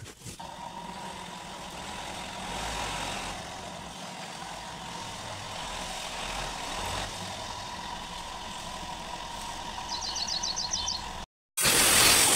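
A small hatchback's engine idles as the car creeps forward.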